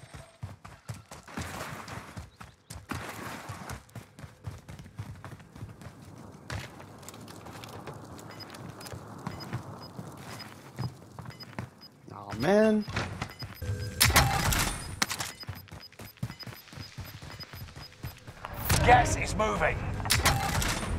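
Quick footsteps patter on hard ground and wooden boards.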